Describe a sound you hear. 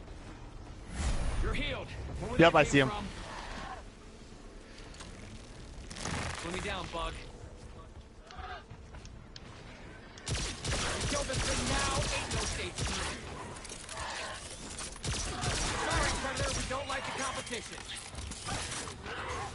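A futuristic gun fires in bursts with crackling energy blasts.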